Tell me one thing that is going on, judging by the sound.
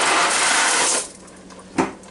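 Dry pasta rattles as it pours into a metal pot.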